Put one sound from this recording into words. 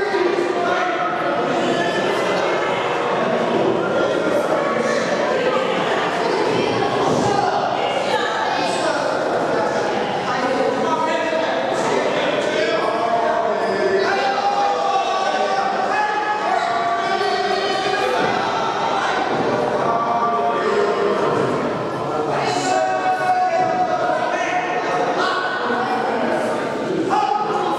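Men talk at a distance.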